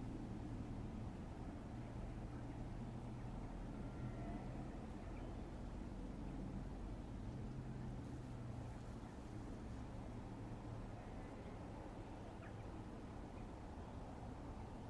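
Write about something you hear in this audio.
A steam locomotive chuffs steadily as it hauls a train past.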